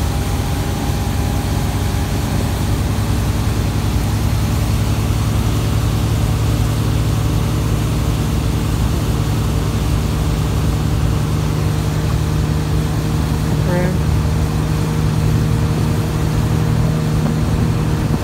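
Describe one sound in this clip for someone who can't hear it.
Water churns and splashes in the boat's wake.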